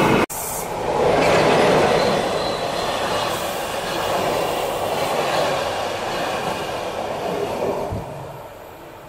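A passing train rushes by loudly close outside.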